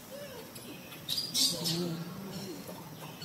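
A baby monkey squeals briefly nearby.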